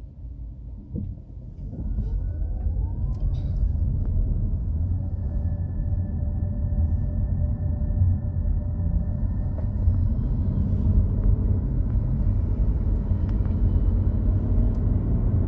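A car engine hums steadily from inside the car as it drives and speeds up.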